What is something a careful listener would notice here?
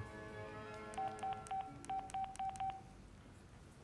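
A phone's keypad beeps in a quick series of short tones.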